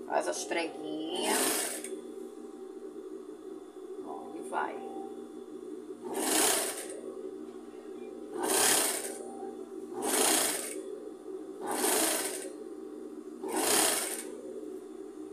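A sewing machine runs in short, quick bursts of stitching.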